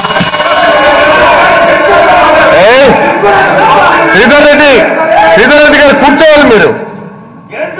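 A middle-aged man speaks firmly and loudly through a microphone.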